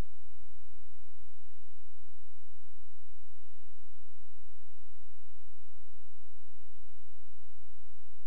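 A small motor hums steadily inside a pipe.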